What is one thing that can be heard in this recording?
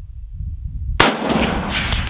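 A rifle fires a single loud shot that echoes briefly.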